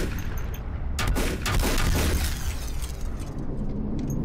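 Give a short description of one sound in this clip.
A gun fires with a loud roaring blast.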